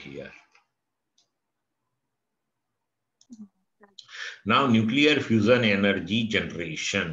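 A middle-aged man speaks calmly into a close microphone, lecturing.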